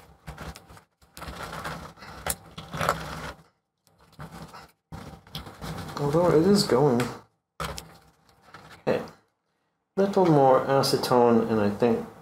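Gloved fingers rustle and tap on metal parts.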